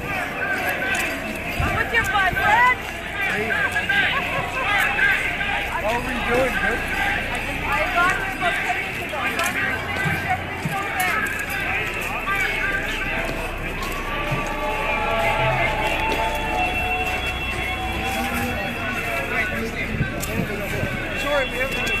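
A crowd of people talk and shout outdoors.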